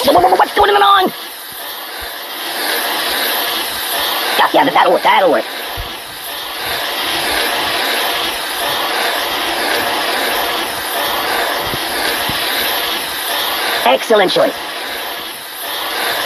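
A spray can hisses steadily.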